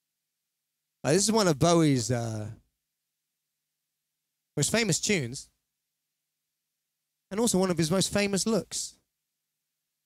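A young man sings into a microphone in short phrases.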